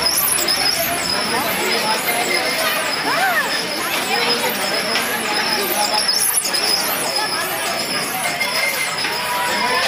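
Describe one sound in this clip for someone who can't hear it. A small children's ride hums steadily as it turns.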